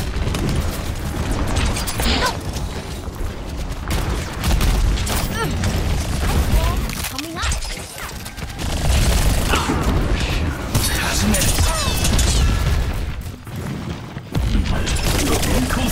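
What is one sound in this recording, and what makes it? Energy blasts whoosh.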